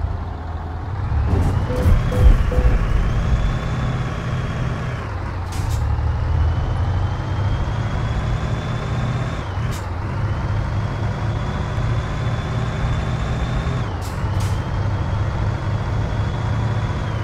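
A truck engine whines higher with each gear and drops at each gear change.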